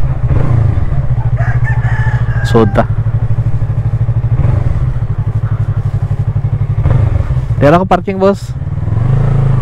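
A motorcycle engine putters steadily at low speed.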